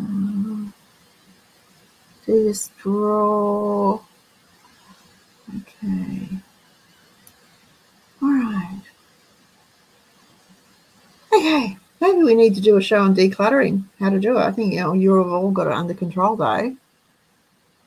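An elderly woman talks calmly over an online call.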